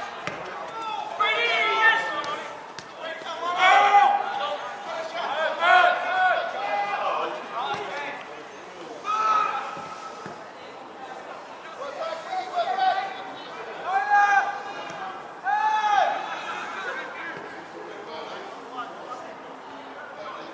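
Spectators on the sideline call out and cheer.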